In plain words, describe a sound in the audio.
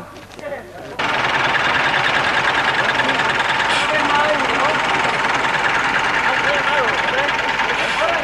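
A crowd of people chatters loudly.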